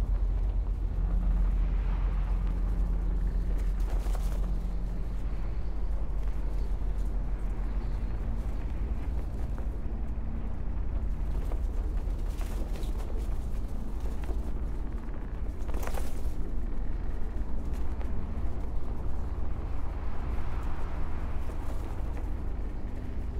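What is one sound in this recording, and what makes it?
A deep machine hum drones steadily.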